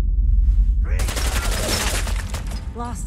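Bullets smash into a wall and debris clatters down.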